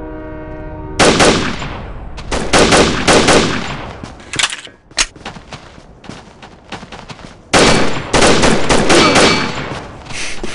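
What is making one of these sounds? A pistol fires several loud shots in quick bursts.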